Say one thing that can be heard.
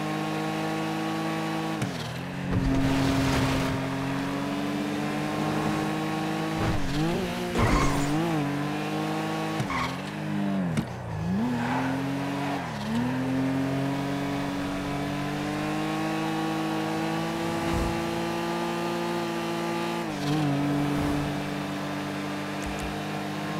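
A car engine hums steadily and rises and falls in pitch as the car speeds up and slows through bends.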